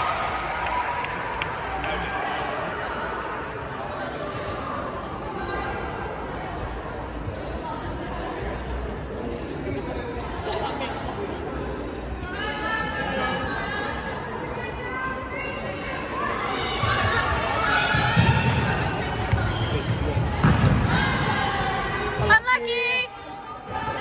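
Girls shout and call out to each other in a large echoing hall.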